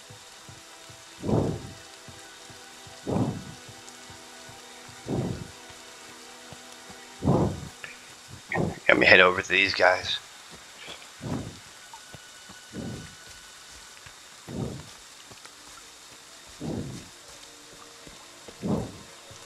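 Footsteps walk over wooden boards and through undergrowth.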